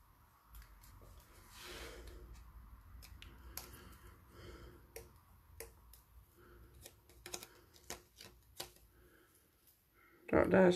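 Paper rustles and crinkles as hands fold and handle it.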